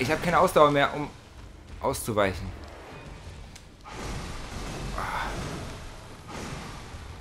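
Flames whoosh and crackle close by.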